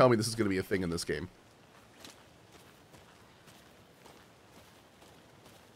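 Footsteps crunch softly on a forest floor.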